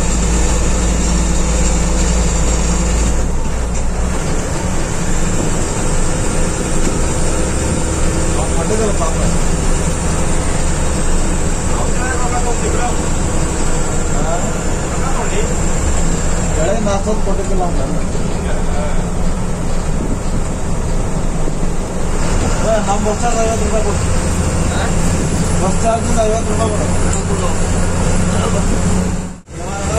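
A bus engine drones steadily as the bus drives along a road.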